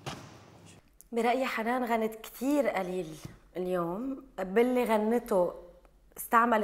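A woman speaks calmly and clearly, close to a microphone.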